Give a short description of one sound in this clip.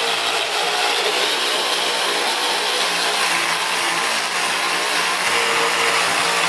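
An electric grinder whines steadily as it sands wood.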